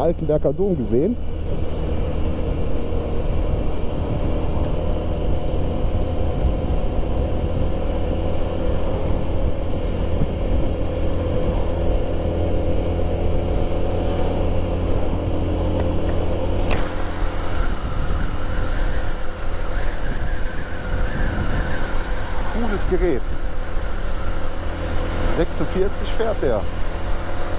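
A motorcycle engine hums steadily close by as the bike rides along.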